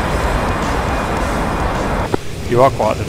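Jet engines roar loudly.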